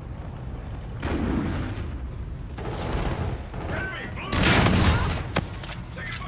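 Gunfire bursts out in loud volleys.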